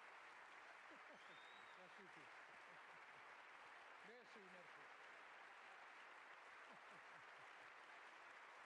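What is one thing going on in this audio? A large audience applauds and cheers loudly in a big hall.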